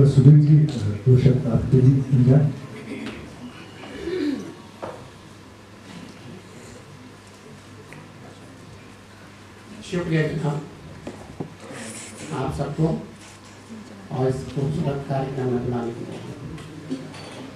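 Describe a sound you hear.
A man speaks into a microphone over a loudspeaker, in a large echoing hall.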